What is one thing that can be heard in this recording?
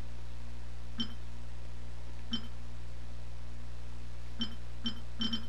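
A game menu gives short soft chimes as selections change.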